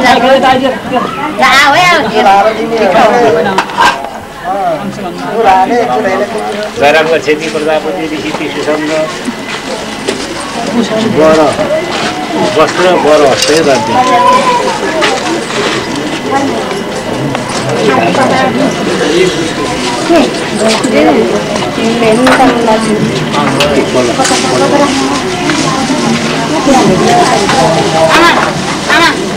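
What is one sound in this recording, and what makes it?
A crowd of men and women talk and call out close by, all at once.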